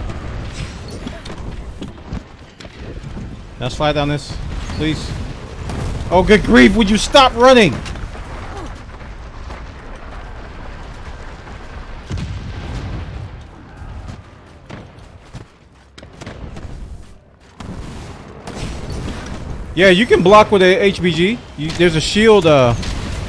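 A weapon clashes and strikes in a game.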